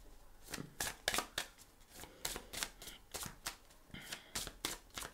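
Playing cards shuffle and flick close by, with sharp crisp snaps.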